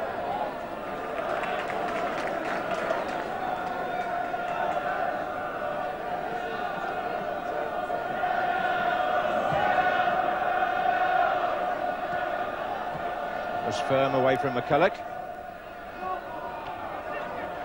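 A large crowd roars and murmurs steadily outdoors.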